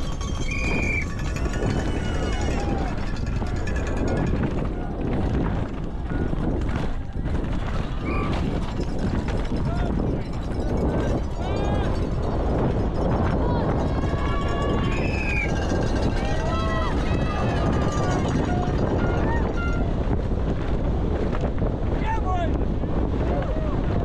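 Bike tyres rattle and crunch over rocks and gravel.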